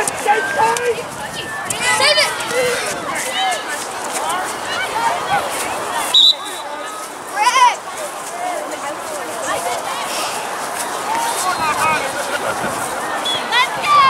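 Adults call out encouragement from nearby.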